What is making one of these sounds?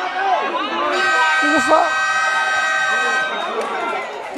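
A referee's whistle blows a long, steady blast.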